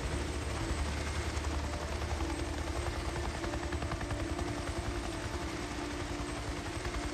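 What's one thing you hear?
Footsteps crunch on a gravel path at a walking pace.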